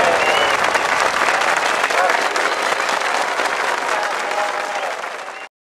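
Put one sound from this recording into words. A large crowd cheers and shouts excitedly.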